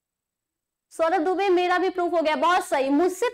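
A young woman speaks clearly and with animation, close to a microphone.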